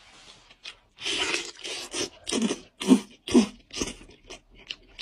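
A man slurps and sucks food noisily.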